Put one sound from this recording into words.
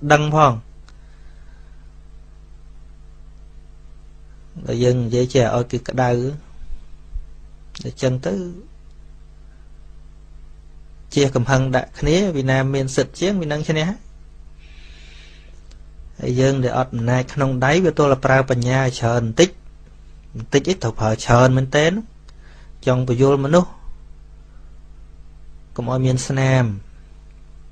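A man speaks calmly into a close microphone, in phrases with pauses.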